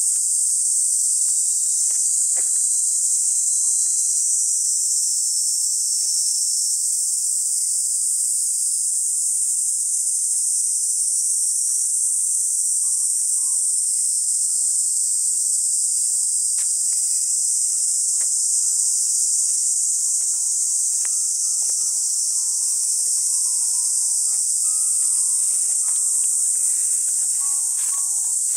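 Footsteps scuff along a paved path at a walking pace.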